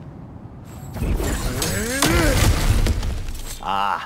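A heavy wooden lid is wrenched open with a loud creak and thud.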